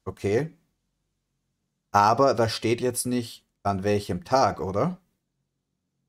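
A man talks calmly into a close microphone, in short bursts.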